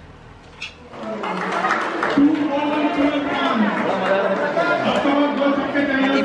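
Children shout and cheer in an open, echoing space.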